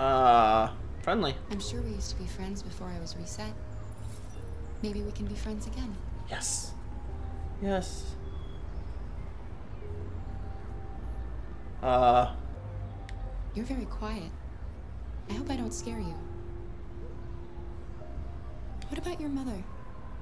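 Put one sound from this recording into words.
A young woman speaks softly and warmly.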